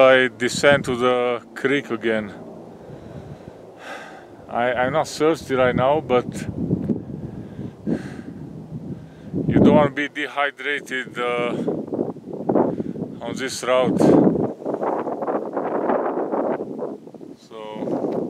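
Wind gusts and rumbles across the microphone.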